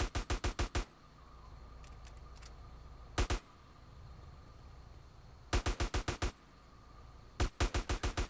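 A gun fires in rapid, loud bursts of shots.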